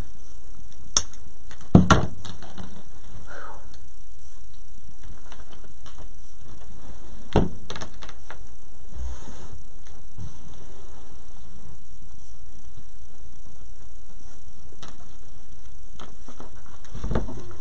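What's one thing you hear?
Hands knock and tap on a table.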